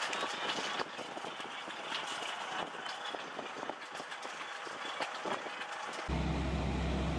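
A farm machine rattles and scrapes through soil.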